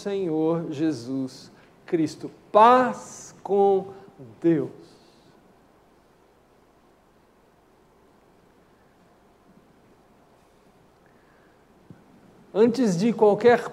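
A middle-aged man speaks calmly into a microphone, with long pauses.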